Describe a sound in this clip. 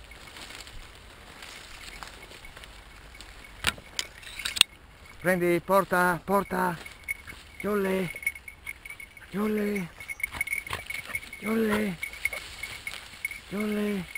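Dry grass rustles and crackles as someone pushes through it.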